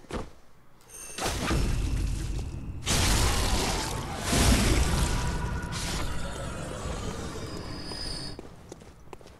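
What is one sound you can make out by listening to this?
A blade slashes into flesh with wet, heavy impacts.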